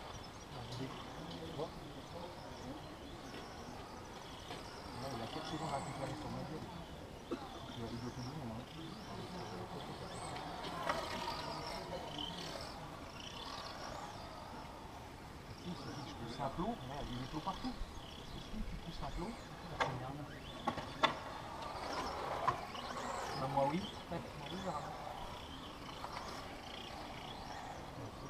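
Young people chat casually nearby outdoors.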